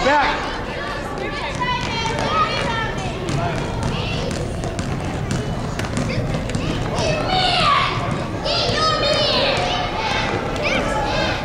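Children's running footsteps thud on a hardwood floor.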